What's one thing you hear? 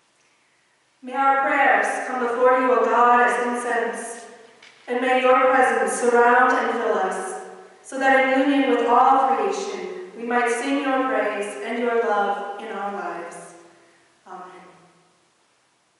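A woman sings in an echoing hall.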